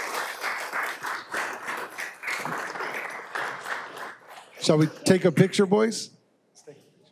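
A group of people clap their hands in a large room.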